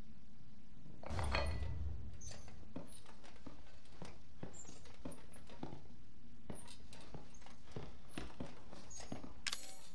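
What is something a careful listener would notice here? Footsteps thud on a creaky wooden floor.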